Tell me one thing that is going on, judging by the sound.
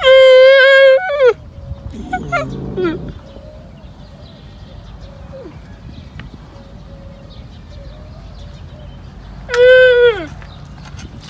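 A young camel bleats loudly in high, drawn-out cries.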